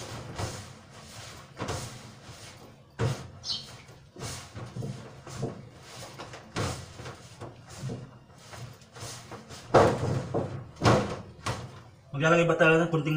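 Gloved hands scrunch and rustle through a dry, crumbly mixture in a plastic tub.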